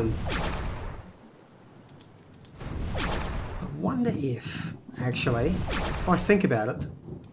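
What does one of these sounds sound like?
A fire spell bursts with a whooshing roar.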